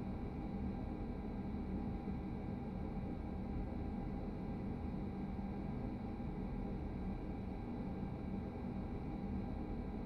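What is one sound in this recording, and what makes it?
A train's electric motor hums steadily.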